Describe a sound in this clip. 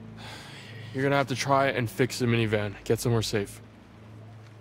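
A man gives instructions in a firm voice.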